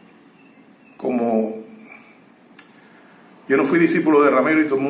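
An elderly man speaks calmly and close by, in short bursts.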